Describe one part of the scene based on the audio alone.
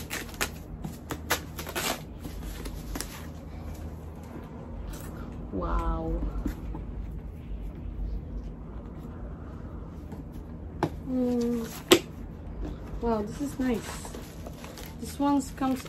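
Paper tissue rustles as it is pulled out.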